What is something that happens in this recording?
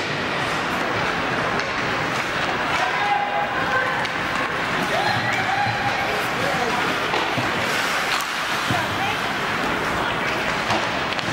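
Hockey sticks clack against the ice and the puck.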